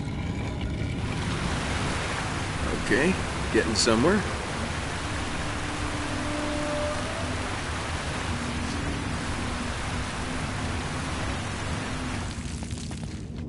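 Water pours down steadily and splashes into a pool, with a hollow echo.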